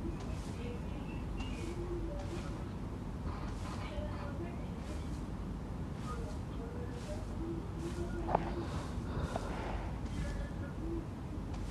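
Footsteps run steadily over sandy ground.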